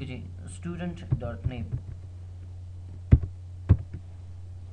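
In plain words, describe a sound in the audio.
Keys clatter on a computer keyboard.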